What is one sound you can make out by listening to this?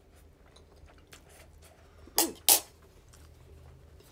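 A young woman chews wetly and close up.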